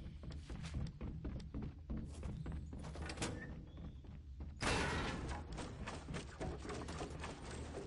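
Wooden panels snap into place with quick clacks.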